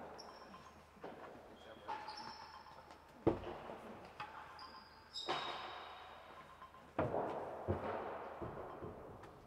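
Rackets strike a ball with sharp thwacks in a large echoing hall.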